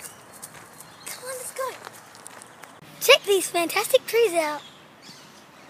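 A young girl speaks cheerfully close by.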